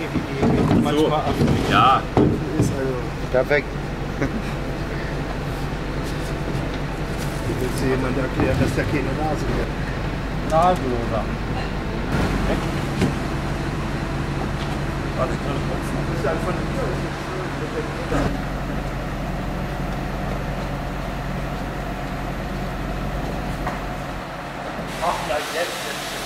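A heavy stone scrapes and thuds on a metal lorry ramp.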